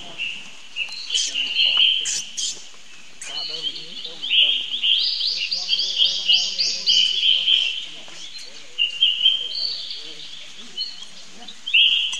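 A baby monkey squeals and cries shrilly.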